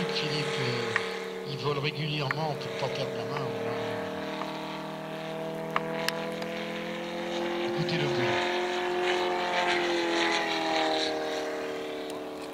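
A small propeller plane's engine drones overhead, its pitch rising and falling as it turns.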